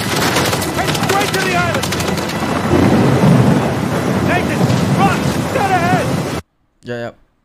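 Stormy sea waves crash and roar loudly.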